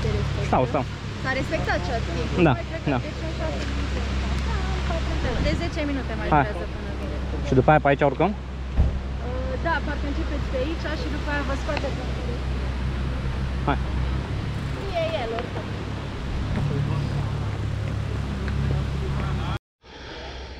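A woman talks with animation close by, outdoors in wind.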